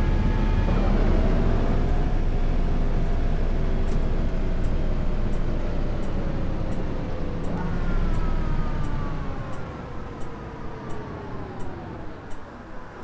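A bus engine hums and whines as the bus slows down.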